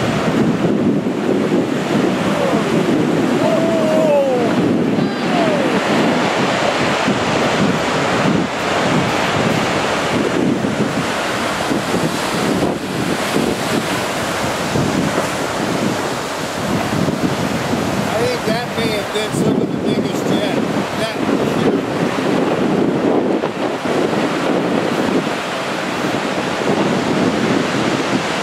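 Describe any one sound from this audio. Heavy waves crash and roar against rocks.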